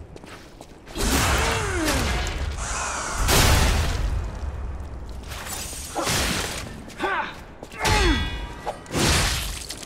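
Blades slash and clash with sharp metallic ringing.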